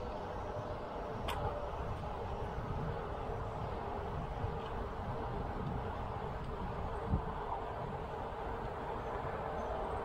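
Wind rumbles steadily against the microphone.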